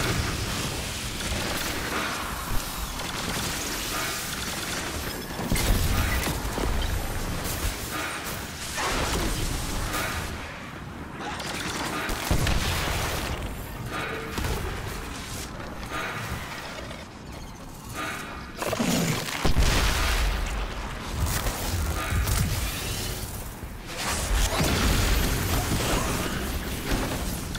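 An electric blast crackles and buzzes in bursts.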